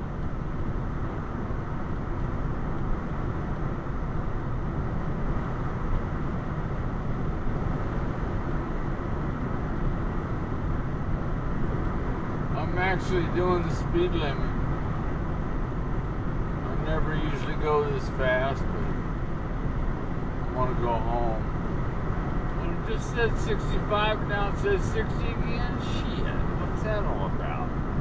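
A car engine hums steadily as tyres roll over the road, heard from inside the car.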